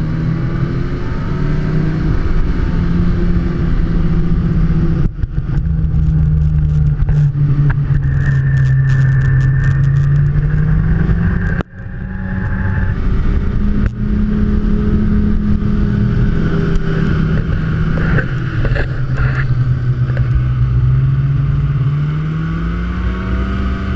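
A snowmobile engine drones loudly and close, rising and falling in pitch.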